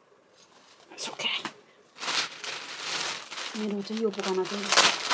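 Plastic packaging crinkles and rustles close by.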